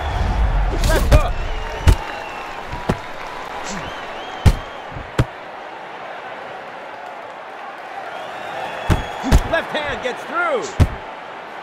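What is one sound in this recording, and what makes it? Boxing gloves thump against a body in sharp punches.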